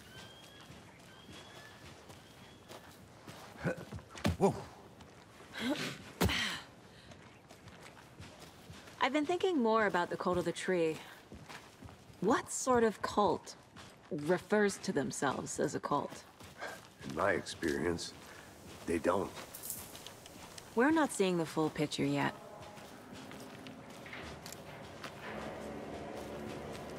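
Footsteps crunch on a forest path.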